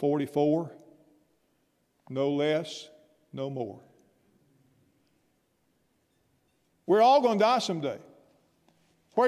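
An elderly man speaks into a microphone in short, emphatic phrases with pauses between them.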